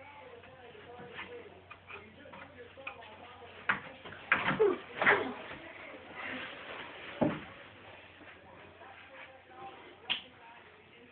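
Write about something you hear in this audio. A wooden bed frame thumps as a child climbs.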